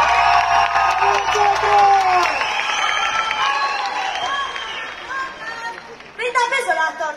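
A group of young voices sings together through microphones in a large hall.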